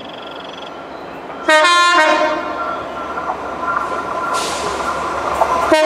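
A diesel-hauled train approaches on the rails.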